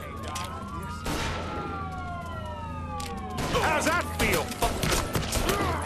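Pistol shots ring out in quick bursts.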